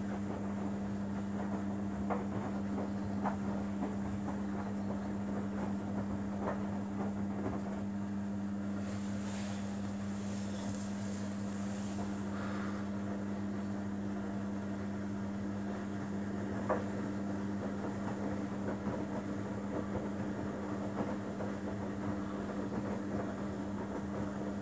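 Wet laundry sloshes and thumps in a turning washing machine drum.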